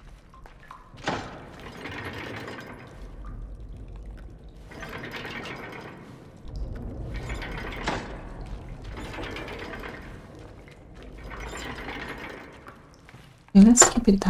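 A heavy metal wheel creaks and grinds as it is turned in repeated strains.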